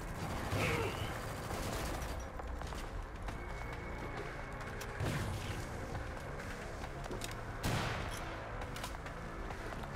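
Guns fire in sharp, loud bursts.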